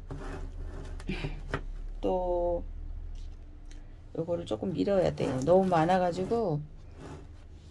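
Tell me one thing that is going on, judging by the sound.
Plastic plant pots knock softly as hands shift them.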